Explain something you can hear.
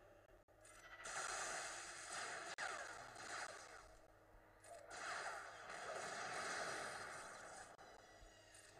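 Energy blasts crackle and burst in a battle.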